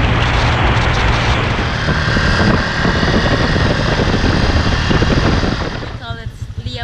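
Wind roars loudly past a microphone on a moving motorbike.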